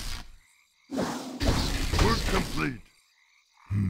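A spell bursts with a loud whoosh.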